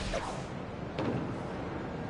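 A figure lands with a soft thud.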